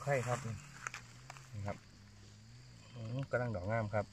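A knife scrapes the stem of a mushroom.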